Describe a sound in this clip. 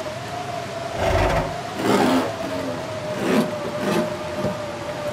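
A car trunk rattles as it is searched.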